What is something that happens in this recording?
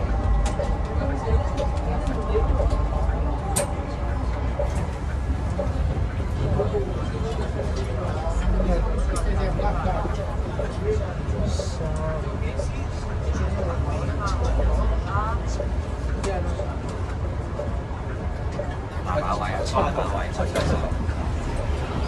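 A bus engine rumbles low and steadily.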